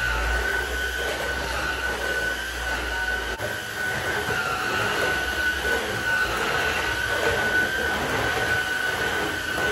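A vacuum cleaner head rolls and scrapes across a hard floor.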